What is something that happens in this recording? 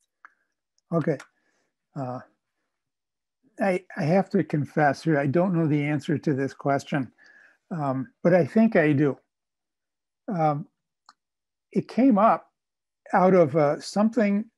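An elderly man speaks calmly through a microphone on an online call.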